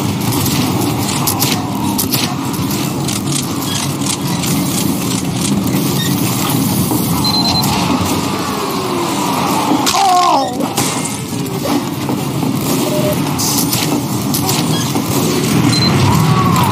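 Weapons fire with sharp bangs.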